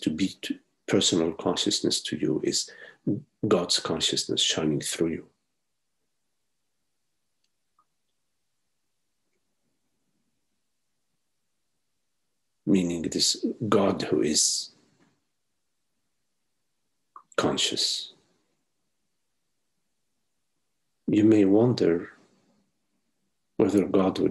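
An older man speaks calmly over an online call, with long pauses.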